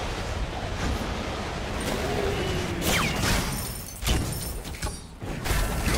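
Game spells whoosh and burst in quick succession.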